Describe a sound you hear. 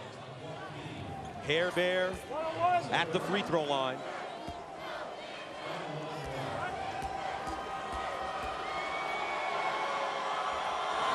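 A large crowd murmurs steadily in a big arena, growing louder.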